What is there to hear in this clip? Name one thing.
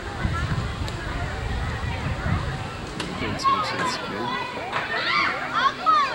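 Children shout and call out.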